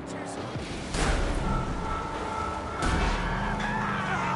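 Metal crashes as vehicles collide.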